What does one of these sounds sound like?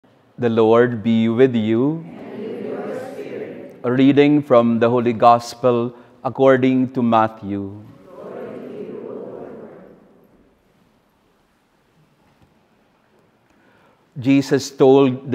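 A man speaks slowly and earnestly through a microphone, his voice echoing in a large hall.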